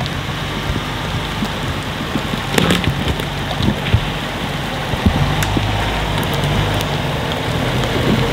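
Tyres crunch over twigs and forest ground.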